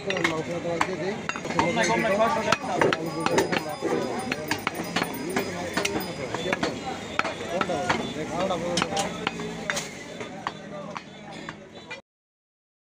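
A cleaver chops sharply into meat on a wooden block.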